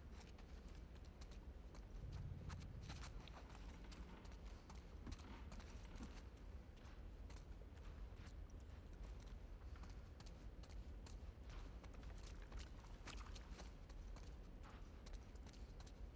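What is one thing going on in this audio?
Footsteps shuffle slowly over a gritty floor.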